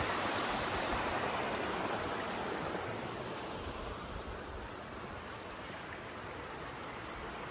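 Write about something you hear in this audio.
A small stream trickles and splashes over rocks, then grows fainter.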